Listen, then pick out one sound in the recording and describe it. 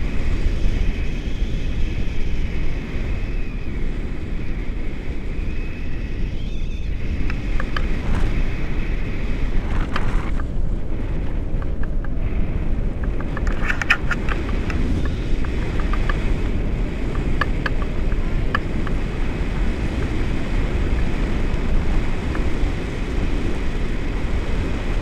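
Strong wind rushes and buffets steadily, loud and close.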